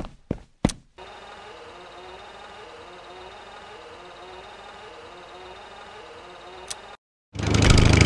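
A small motor hums steadily.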